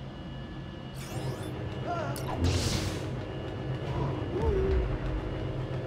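Lightsabers clash and crackle in short bursts.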